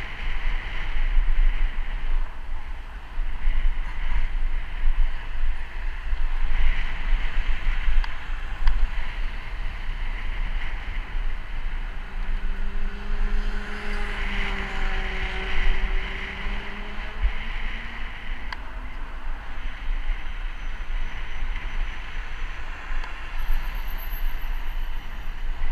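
Wind rumbles steadily against the microphone.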